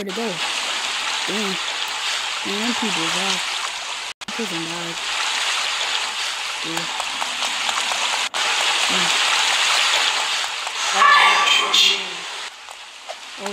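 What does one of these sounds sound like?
Water rushes steadily through a tunnel.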